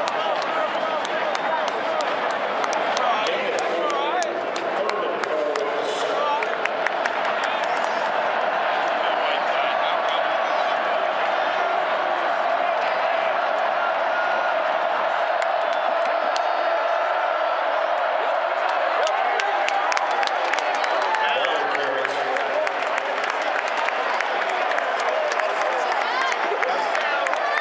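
A large stadium crowd roars and cheers steadily all around.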